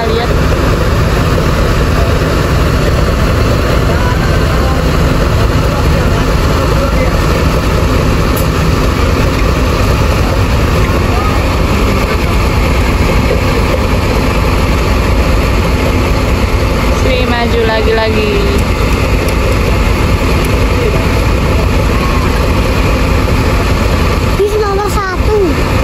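A large bus engine rumbles steadily close by.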